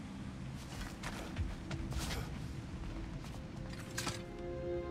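Heavy footsteps thud on a wooden floor.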